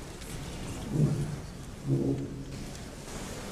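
A man speaks briefly into a microphone in a large hall.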